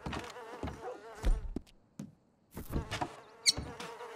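Footsteps thud on creaky wooden floorboards.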